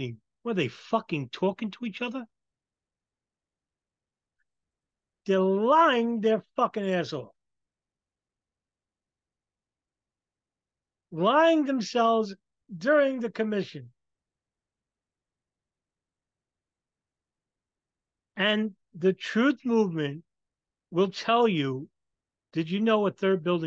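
A man speaks with animation into a microphone, heard as if over an online call, in bursts with long pauses.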